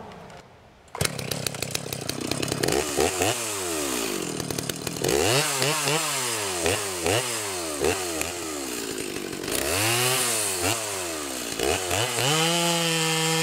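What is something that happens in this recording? A chainsaw engine starts and revs up and down.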